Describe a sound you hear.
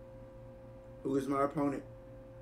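A young man speaks briefly with excitement into a microphone.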